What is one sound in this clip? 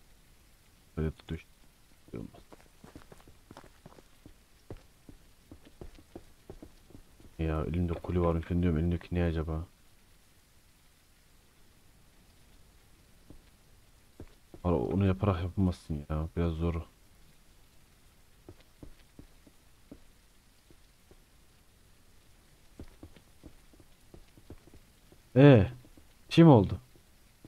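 A young man talks into a close microphone in short bursts.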